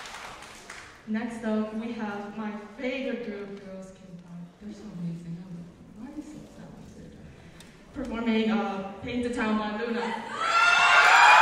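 A young woman speaks calmly through a microphone in a large hall.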